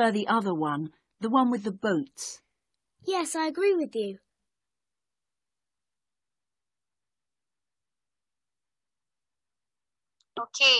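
A young woman speaks clearly and with animation through a computer microphone.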